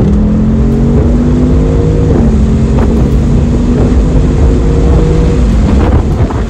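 Wind rushes past in an open car.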